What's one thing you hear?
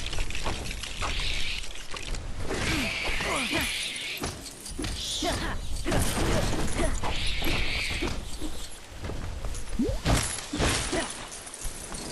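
Small coins jingle and chime as they are picked up.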